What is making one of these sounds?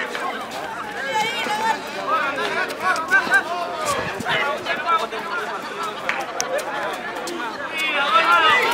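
A crowd of men and women chatter and shout loudly outdoors.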